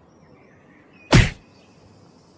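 A fist thuds against a stone wall.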